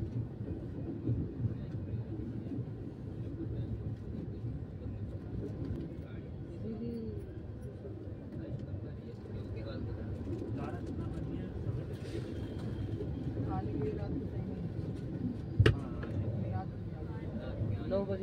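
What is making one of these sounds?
A passing train rumbles and rattles loudly along the tracks close by.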